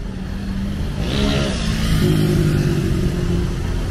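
A motorcycle engine revs and passes close by.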